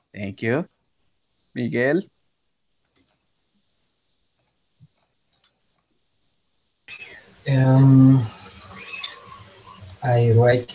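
A man speaks over an online call, in short phrases with pauses.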